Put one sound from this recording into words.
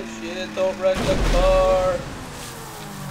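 A car splashes heavily into water.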